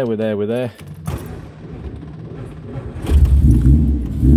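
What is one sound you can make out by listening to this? A car engine cranks and starts up.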